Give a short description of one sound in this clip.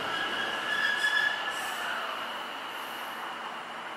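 A train hums and whirs as it pulls away.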